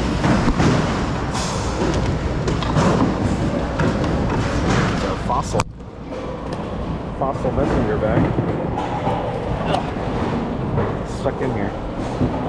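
Items rustle and clatter as hands rummage through a bin.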